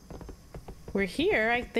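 A young woman speaks into a microphone close by.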